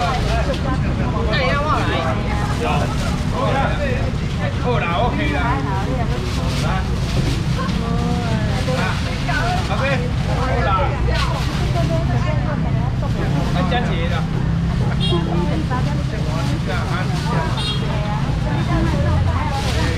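Plastic bags crinkle and rustle as they are filled.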